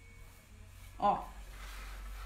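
A board knocks lightly on a table.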